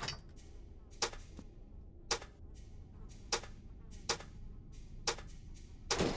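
Sharp game clicks sound one at a time as buttons are pressed.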